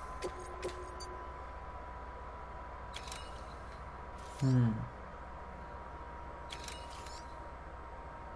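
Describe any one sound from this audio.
Short electronic menu clicks and chimes sound now and then.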